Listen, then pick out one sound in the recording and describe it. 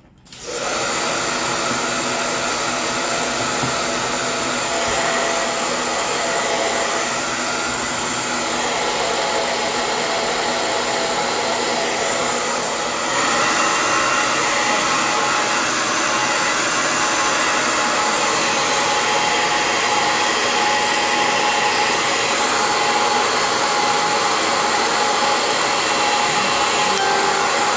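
A hair dryer blows steadily and loudly close by.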